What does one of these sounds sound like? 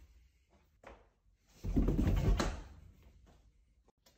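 Footsteps thump quickly down stairs.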